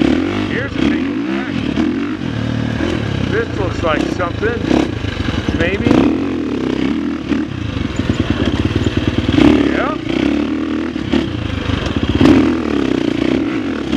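A dirt bike engine revs and sputters up close, rising and falling in pitch.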